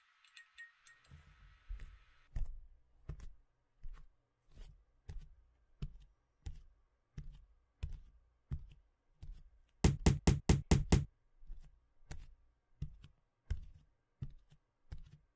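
Footsteps thump at a steady walking pace.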